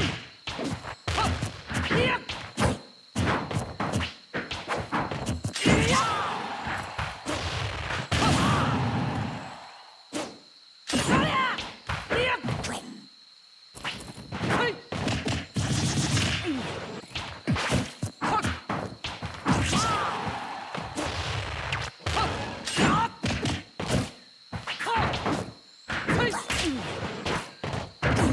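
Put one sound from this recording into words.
Sword slashes and hits land with sharp thwacks in rapid bursts.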